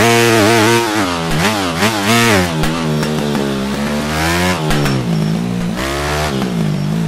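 A dirt bike engine revs up and down, its pitch rising and falling with the throttle.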